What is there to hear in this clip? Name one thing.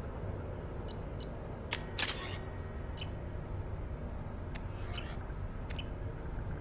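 Short electronic clicks and swooshes sound every second or so.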